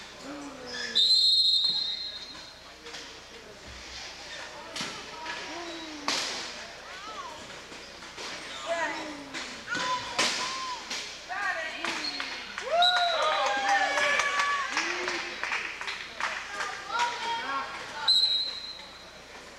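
A referee's whistle blows sharply in an echoing hall.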